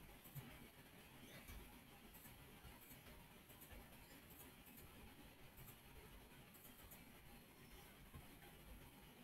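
Blocks are placed one after another with short, soft clicks.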